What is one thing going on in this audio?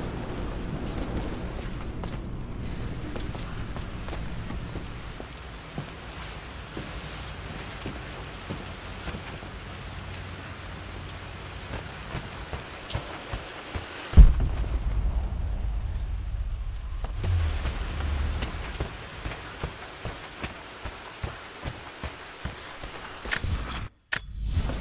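Footsteps tread across a hard floor indoors.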